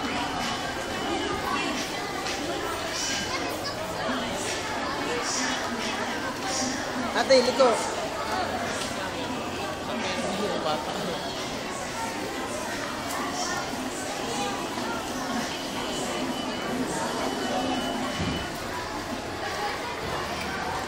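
Plastic wheels of ride-on toy animals roll and rattle on a hard floor.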